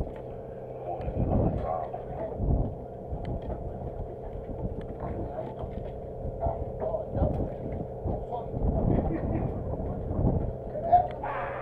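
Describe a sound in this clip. Wind buffets the microphone in low gusts.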